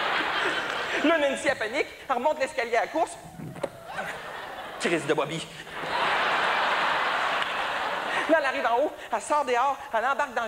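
A man talks with animation to an audience.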